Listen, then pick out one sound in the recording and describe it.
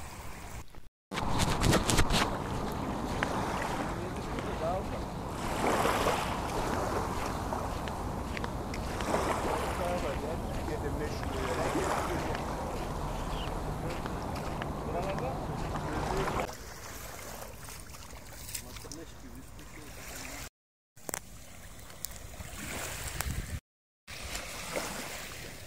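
Small waves lap gently at the shore.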